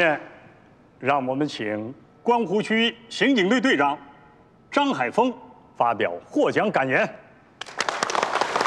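A man speaks formally through a loudspeaker in a large hall.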